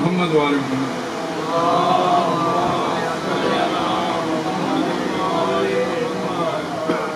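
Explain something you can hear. A middle-aged man recites with passion into a microphone, heard through loudspeakers in an echoing space.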